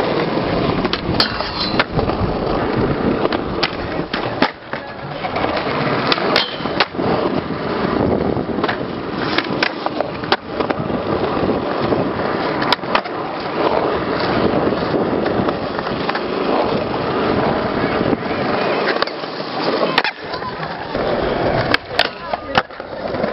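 A skateboard grinds along a metal rail.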